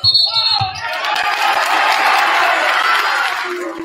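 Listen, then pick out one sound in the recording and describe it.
A crowd cheers loudly in a large echoing gym.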